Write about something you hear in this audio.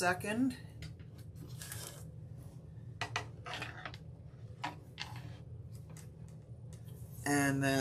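Paper rustles as it is peeled and handled.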